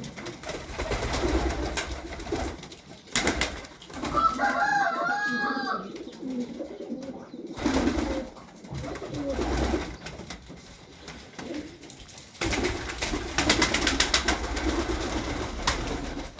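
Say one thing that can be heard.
Pigeons coo softly and repeatedly close by.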